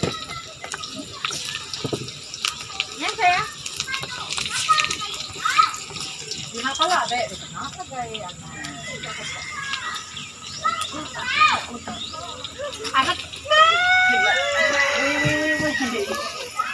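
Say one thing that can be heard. Food sizzles as it fries in hot oil.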